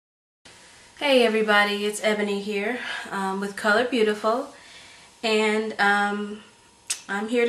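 A young woman speaks calmly and close to the microphone.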